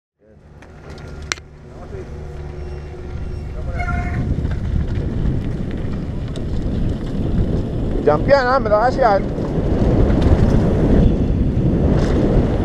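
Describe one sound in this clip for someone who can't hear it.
Wind rushes past, rumbling low.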